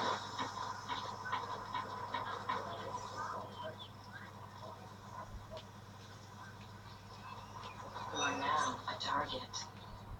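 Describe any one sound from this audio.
Video game sound effects clatter and swish through a television speaker.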